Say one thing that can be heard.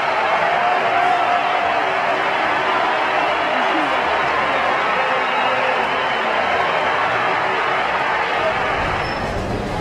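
A stadium crowd roars and cheers in a large open arena.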